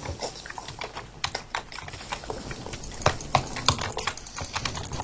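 Short dull thuds of blows land in quick succession.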